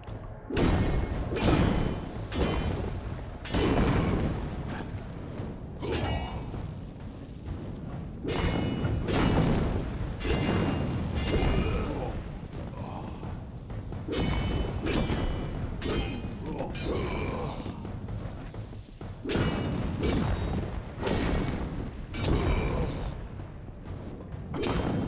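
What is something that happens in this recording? Fiery magic blasts burst and roar again and again.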